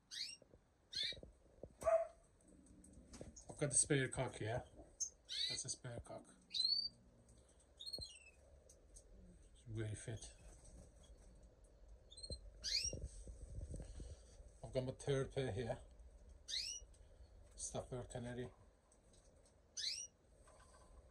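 Small birds chirp and call in short, rising notes.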